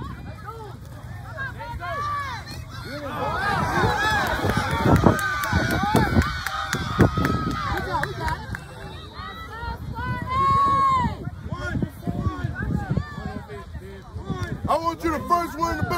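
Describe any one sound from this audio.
A crowd of spectators cheers and shouts excitedly outdoors.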